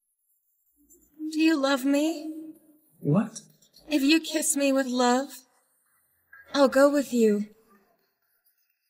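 A young woman answers softly close by.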